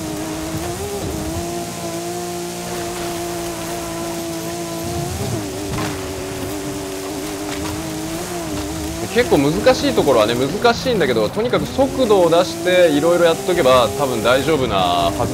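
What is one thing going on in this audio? A car engine drones at high revs, shifting pitch now and then.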